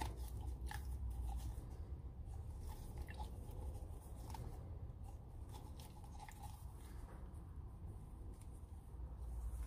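A thin plastic cup crinkles and taps softly in hands.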